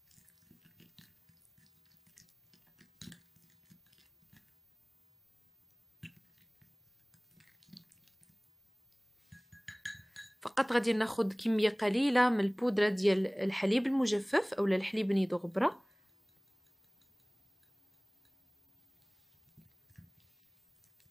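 A plastic spoon stirs and scrapes inside a small glass bowl.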